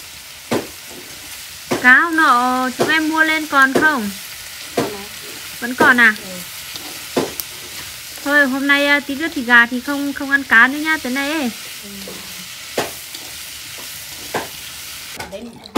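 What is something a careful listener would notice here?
Greens sizzle and rustle as they are stirred in a hot wok.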